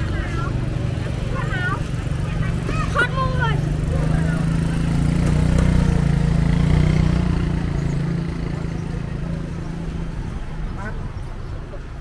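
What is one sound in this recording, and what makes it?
A motorbike engine hums close by.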